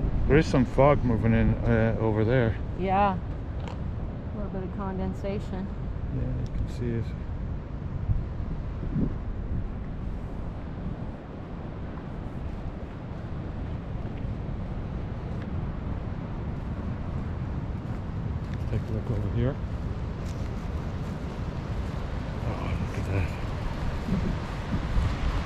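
Waves wash against rocks and shore far below.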